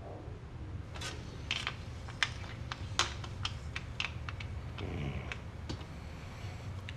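Small wooden objects click against a hard surface.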